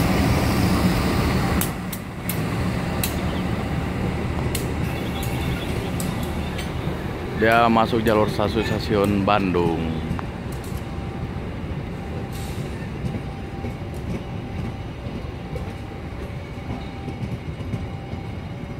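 Train wheels clack rhythmically over rail joints.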